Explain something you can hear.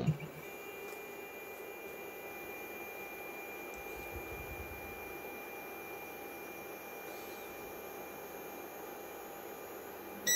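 A machine's motor whirs steadily as a platform slowly lifts.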